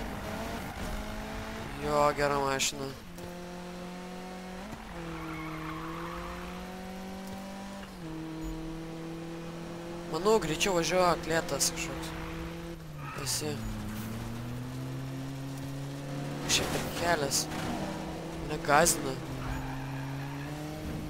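A car engine roars steadily, its pitch shifting as gears change.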